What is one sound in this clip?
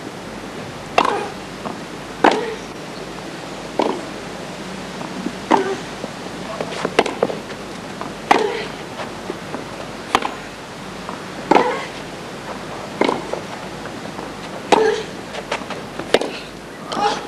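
Tennis balls are struck back and forth with sharp pops.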